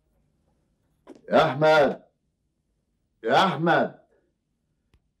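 A middle-aged man speaks emphatically.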